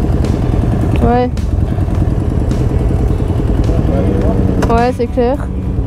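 A motorcycle engine revs up sharply a few times.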